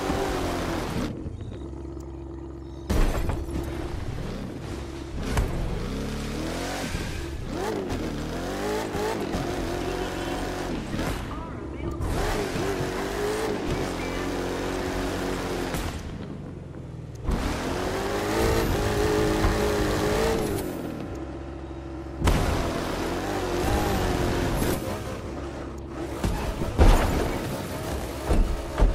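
A monster truck engine roars and revs up and down.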